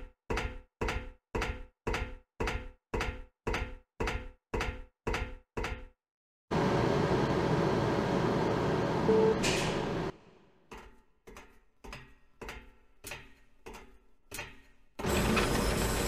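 Footsteps clank steadily on metal stairs.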